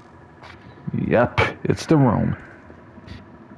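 A young man speaks quietly and calmly.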